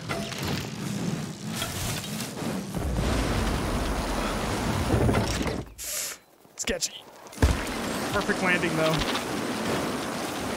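Bicycle tyres roll and crunch over a dirt trail at speed.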